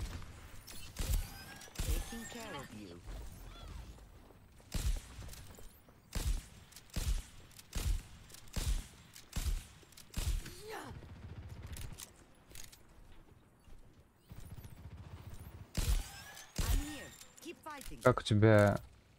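Rifle shots crack one after another, each with a short echo.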